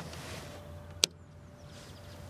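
A button clicks under a finger.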